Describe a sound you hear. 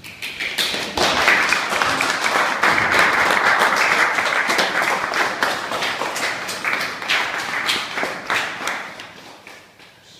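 A crowd of young people cheers and shouts loudly close by.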